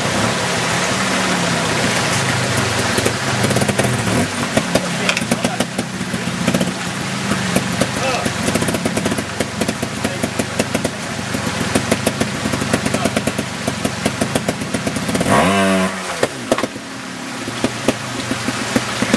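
A motorbike engine idles and revs in short bursts.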